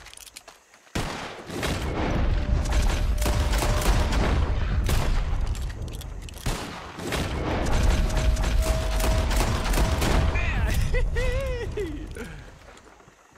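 Shotgun blasts ring out in rapid bursts, echoing outdoors.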